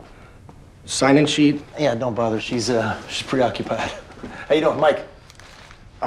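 A young man speaks tensely nearby.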